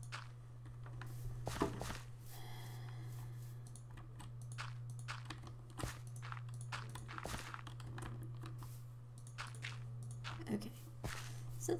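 Footsteps thud softly on grass.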